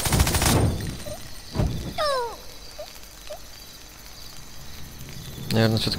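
Small explosions boom in short bursts.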